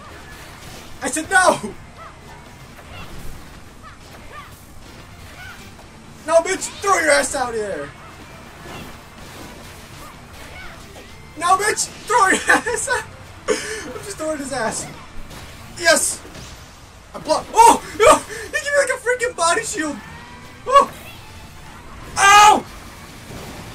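A man talks and exclaims with excitement close to a microphone, in short bursts.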